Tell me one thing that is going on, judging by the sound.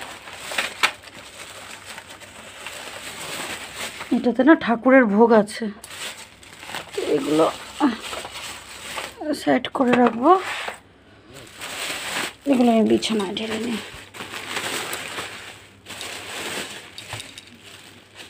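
A plastic bag rustles and crinkles as hands handle it.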